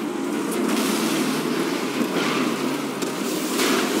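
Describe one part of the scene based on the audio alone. A car engine rumbles and revs as it drives off.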